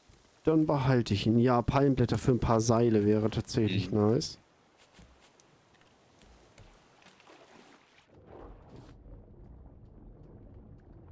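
Water laps gently against a raft.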